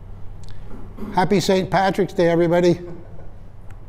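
An elderly man speaks briefly and clearly nearby.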